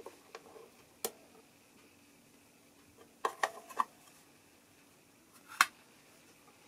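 A plastic cover clicks and snaps as it is pried off.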